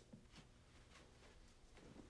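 Clothes rustle as a person handles them.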